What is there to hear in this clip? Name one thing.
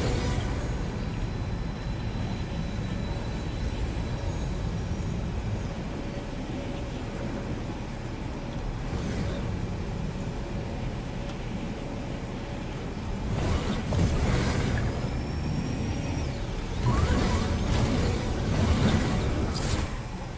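Wind rushes steadily while gliding.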